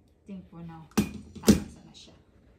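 A staple gun knocks down onto a wooden floor.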